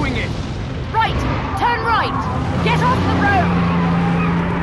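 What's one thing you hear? A woman shouts commands.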